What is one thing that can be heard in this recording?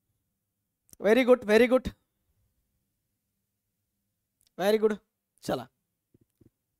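A young man speaks clearly into a clip-on microphone in short bursts.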